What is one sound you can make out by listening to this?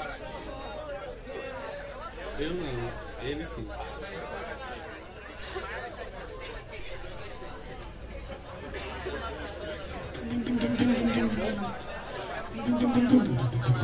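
A bass guitar plays low notes.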